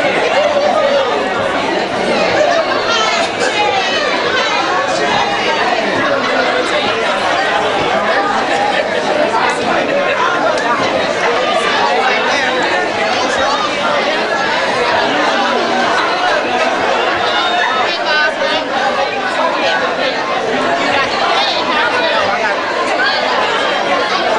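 A large crowd of men and women sings and shouts loudly in an echoing hall.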